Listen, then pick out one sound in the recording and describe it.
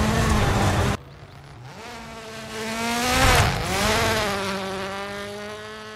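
A rally car engine races past outside, rising and then fading away.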